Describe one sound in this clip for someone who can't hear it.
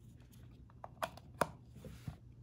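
Cable plugs click into sockets.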